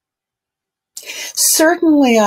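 An elderly woman speaks over an online call.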